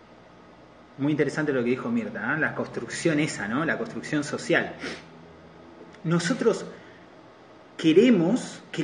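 A man talks calmly and close to the microphone, in short bursts.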